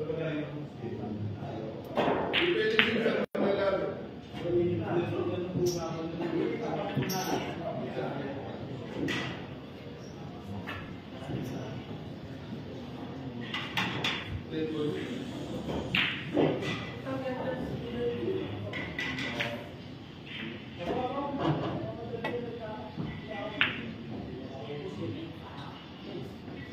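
A cue stick strikes a pool ball with a sharp click.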